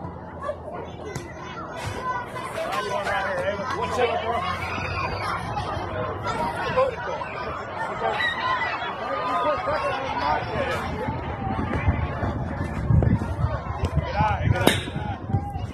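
Spectators cheer and call out outdoors.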